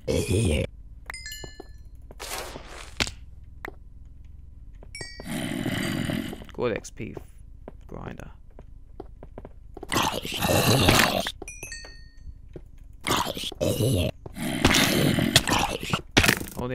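Blocks of stone crunch as they are broken one after another.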